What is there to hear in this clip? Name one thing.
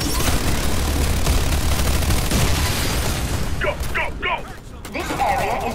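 Automatic rifles fire in bursts.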